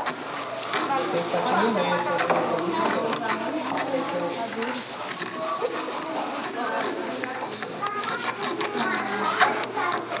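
A small tool scrapes inside a dry gourd.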